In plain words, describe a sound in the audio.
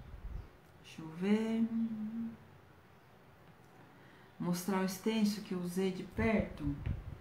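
A woman speaks calmly, close to the microphone.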